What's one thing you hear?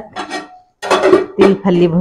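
A metal spatula clinks against a pot lid.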